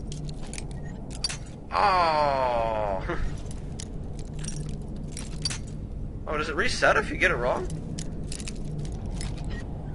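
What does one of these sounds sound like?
A metal lockpick snaps.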